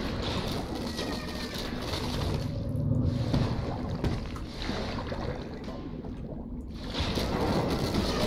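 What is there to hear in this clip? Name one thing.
Water churns and splashes as a shark attacks.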